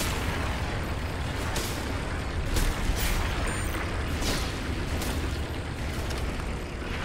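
Strong wind roars steadily.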